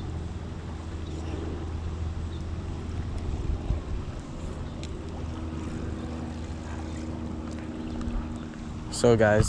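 Water flows and ripples steadily in a stream.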